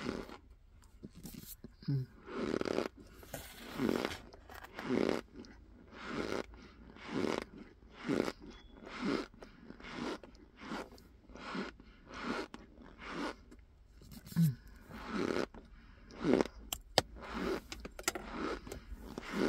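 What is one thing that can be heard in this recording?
A spoon scoops and crunches into soft, packed powder, over and over.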